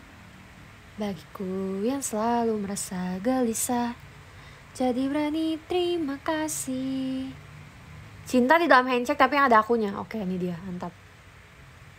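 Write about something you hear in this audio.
A young woman speaks close by, in a playful tone.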